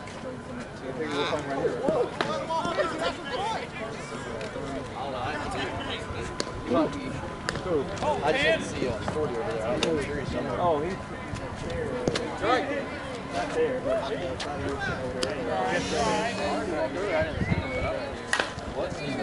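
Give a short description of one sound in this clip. Several men and women shout and chatter outdoors across an open field.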